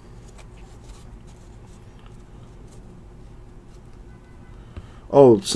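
Cards softly rustle and flick as they are shuffled by hand.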